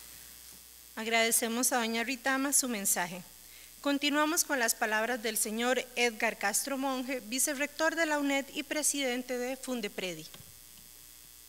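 A young woman speaks calmly into a microphone, heard through loudspeakers.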